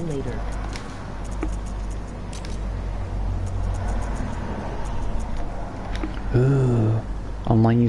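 Short clicks tick as menu items are selected.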